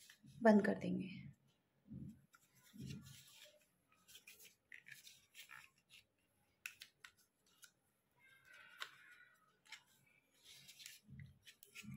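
A plastic mould clicks as it is pressed shut and opened.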